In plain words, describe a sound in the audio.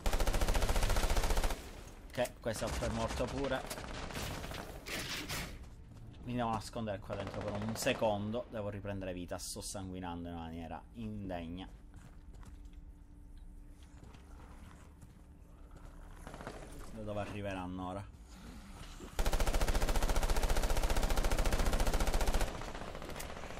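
An automatic rifle fires rapid bursts of loud shots.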